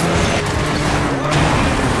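A car crashes through a barrier with a loud bang.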